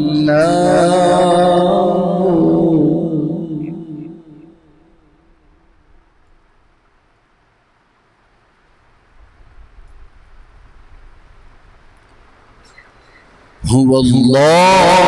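A man chants a long, melodic recitation into a microphone, pausing between phrases.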